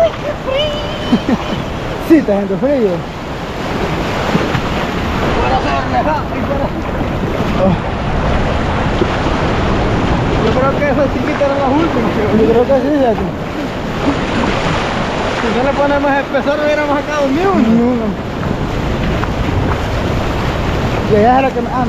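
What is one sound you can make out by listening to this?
Legs splash through shallow water.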